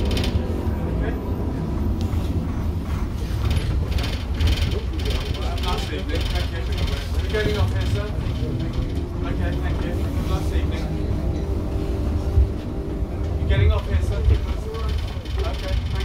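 A bus engine rumbles steadily inside a moving bus.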